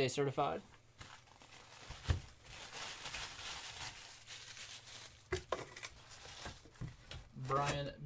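Tissue paper rustles and crinkles as hands unwrap it.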